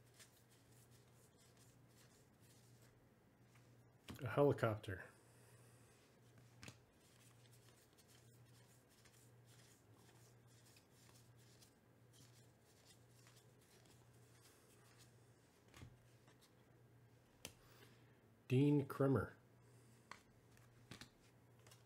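Cardboard cards rustle and flick softly as hands sort through a stack.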